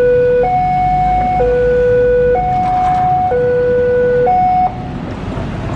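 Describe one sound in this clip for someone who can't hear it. A railway crossing alarm rings in a steady two-tone chime.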